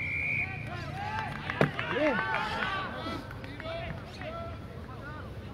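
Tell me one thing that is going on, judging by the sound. Players shout across an open field.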